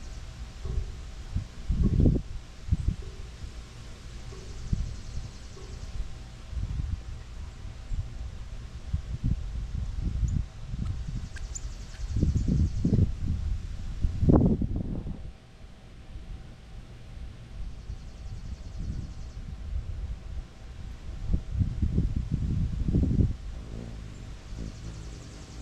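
Leaves rustle in the wind.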